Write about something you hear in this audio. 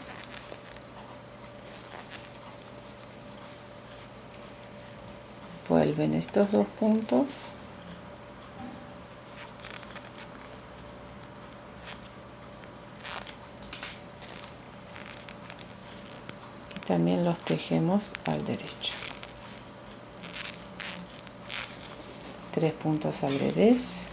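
Metal knitting needles click softly against each other.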